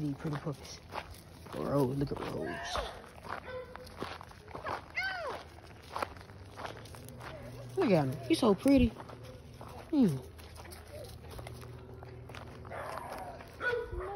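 Footsteps crunch on a gravel and dirt path.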